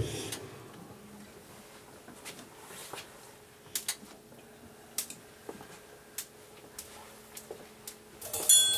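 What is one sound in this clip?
An acoustic guitar plays softly.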